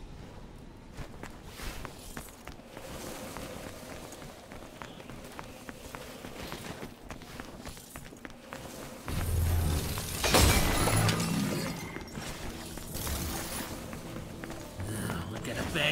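Footsteps crunch over rubble and stone.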